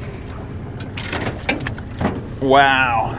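A fish flaps and knocks against a metal boat floor.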